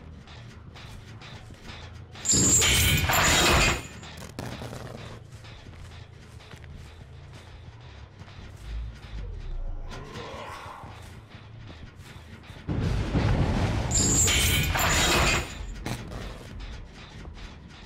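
Footsteps rustle through grass and creak on wooden boards.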